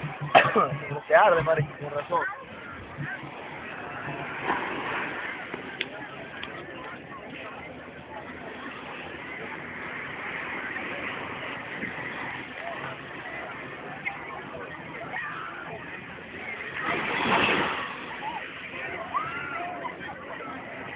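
A crowd of people chatters and shouts at a distance outdoors.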